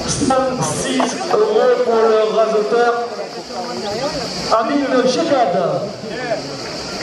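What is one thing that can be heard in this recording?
A man nearby calls out loudly.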